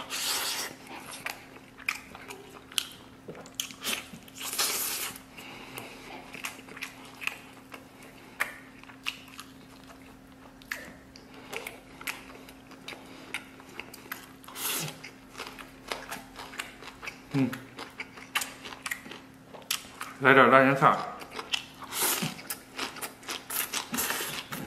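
A man slurps and chews food close up.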